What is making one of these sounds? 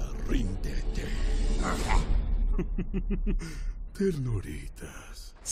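A deep male voice speaks with menace.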